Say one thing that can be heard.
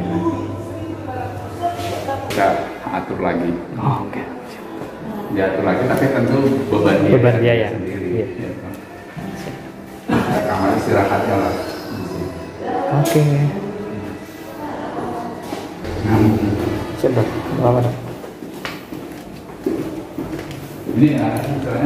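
A middle-aged man speaks calmly up close, his voice muffled.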